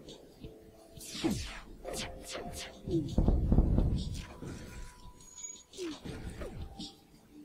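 Laser weapons fire in quick bursts with sharp whooshing zaps.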